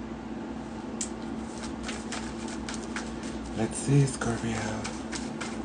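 Playing cards riffle and snap as they are shuffled.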